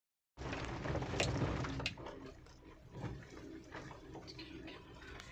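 Tyres rumble and bump over a rough road.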